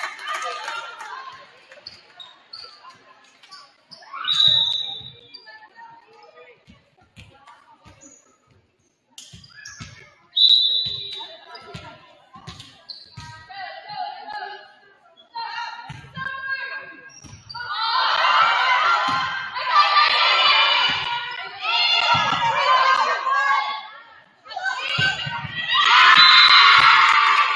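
A volleyball is struck with dull thumps, again and again.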